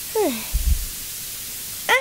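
A high cartoon voice chatters excitedly.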